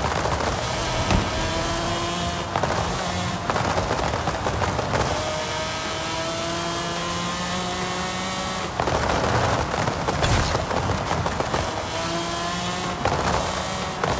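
A sports car engine revs high and rises in pitch through the gears.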